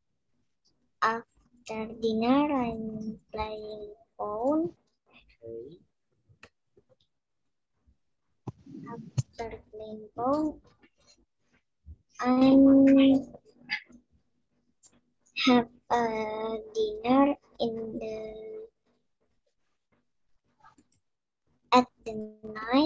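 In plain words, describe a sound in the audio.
A boy talks with animation over an online call.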